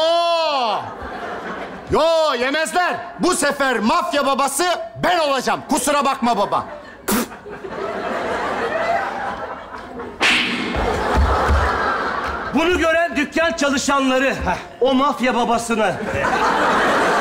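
A man shouts loudly through a microphone on a stage.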